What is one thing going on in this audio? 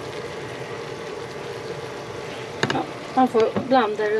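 A metal fork clinks against a pan.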